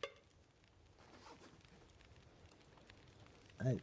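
A fire crackles softly in a stove.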